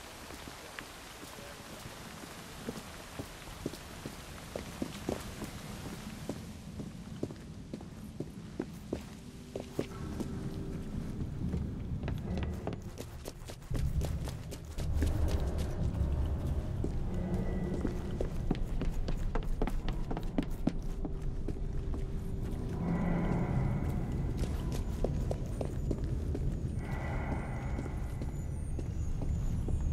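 Footsteps walk steadily on hard ground and wooden boards.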